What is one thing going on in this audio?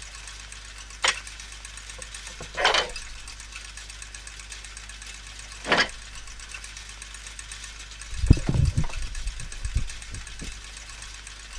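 Metal gears click and clank into place.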